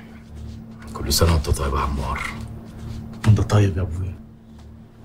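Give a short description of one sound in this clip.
A man speaks angrily, close by.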